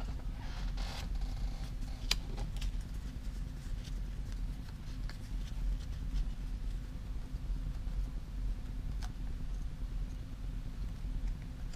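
Paper crinkles and rustles as hands fold and handle it.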